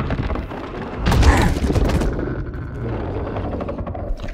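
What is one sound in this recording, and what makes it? A heavy crashing blow strikes with a loud burst.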